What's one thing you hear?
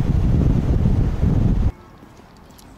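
Wind rushes loudly past an open car window.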